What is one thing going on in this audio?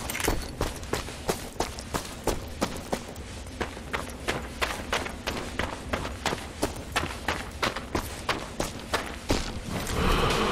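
Footsteps crunch quickly on gravel as a soldier runs.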